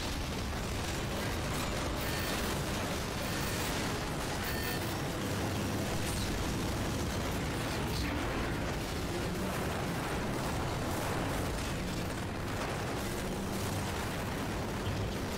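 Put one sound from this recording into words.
Loud explosions boom and roar.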